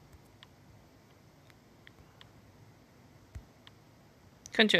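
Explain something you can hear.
Soft game menu clicks tap now and then.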